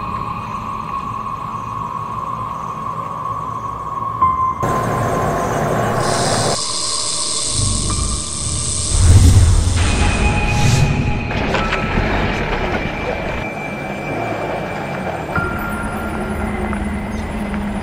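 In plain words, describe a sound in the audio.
A car engine rumbles as it drives closer.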